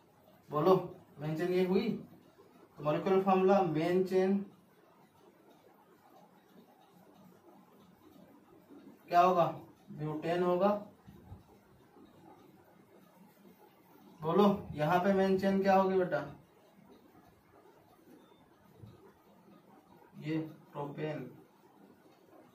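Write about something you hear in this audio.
A man speaks calmly and clearly nearby, in short phrases with pauses.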